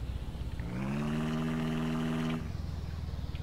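An engine revs up briefly.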